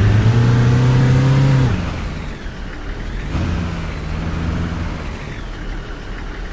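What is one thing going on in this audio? A truck engine revs loudly and then drops in pitch.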